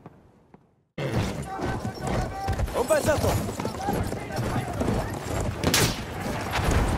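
A horse gallops, hooves pounding on the ground.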